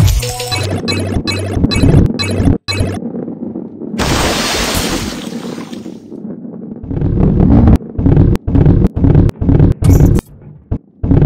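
Small explosions pop and burst in quick succession.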